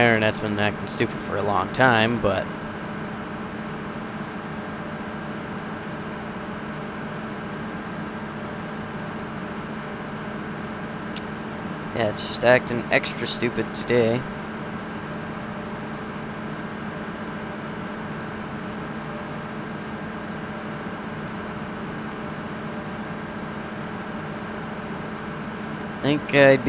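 A young man speaks casually into a headset microphone, close by.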